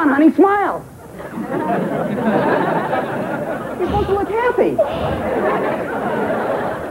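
A woman speaks excitedly.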